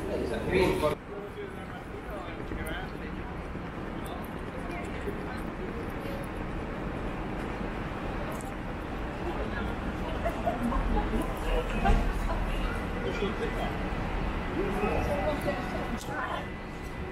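A group of young women chat nearby outdoors.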